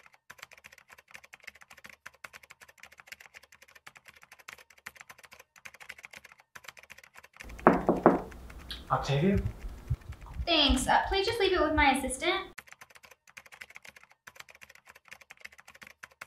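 Fingers tap quickly on a laptop keyboard.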